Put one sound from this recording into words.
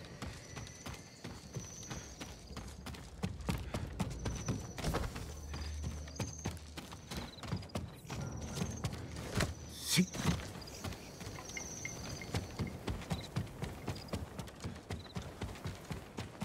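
Footsteps thud quickly across wooden boards.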